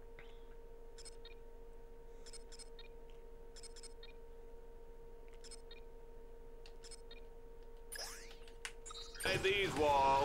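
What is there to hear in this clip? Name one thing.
Short electronic beeps sound one after another as a game menu is scrolled.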